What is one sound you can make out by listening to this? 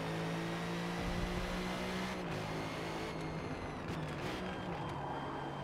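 A racing car engine roars steadily at high revs.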